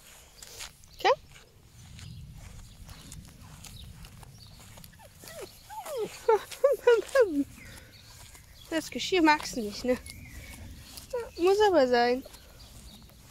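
A puppy whines in high, wavering cries.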